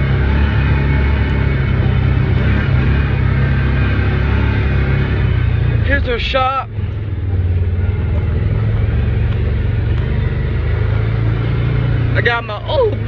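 An off-road vehicle's engine idles with a steady, deep rumble.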